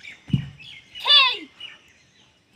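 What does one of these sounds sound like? A young woman lets out a short, sharp shout nearby.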